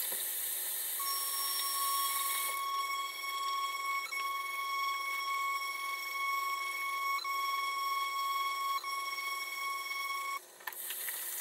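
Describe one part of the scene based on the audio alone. A small electric face brush hums steadily.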